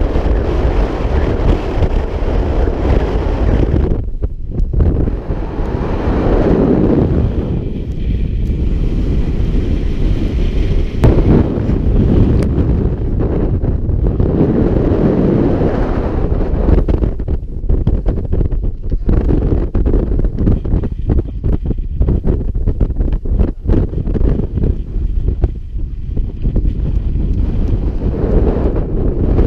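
Strong gusty wind buffets the microphone outdoors.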